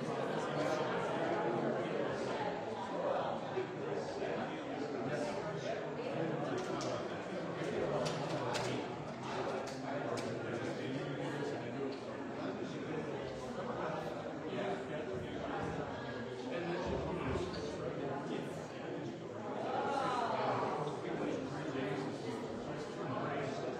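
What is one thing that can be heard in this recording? A young man speaks calmly into a microphone in a large echoing room.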